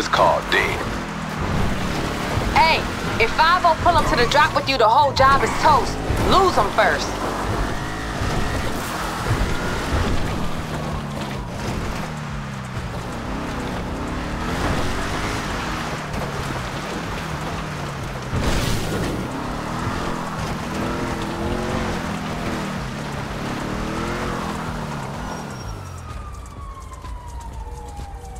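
A car engine revs and roars, rising and falling in pitch.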